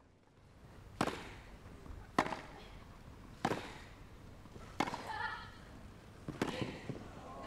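A tennis racket strikes a ball in a rally.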